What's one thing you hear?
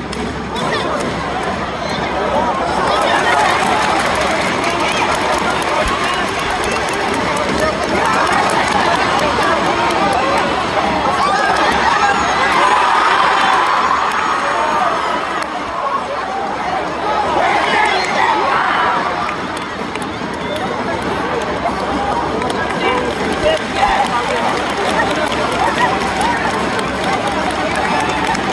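A large crowd in a stadium cheers and chants steadily, swelling and easing.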